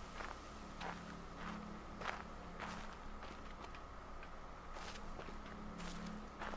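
Footsteps crunch steadily on grass and gravel.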